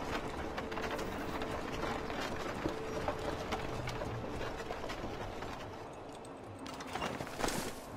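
Horse hooves clop steadily.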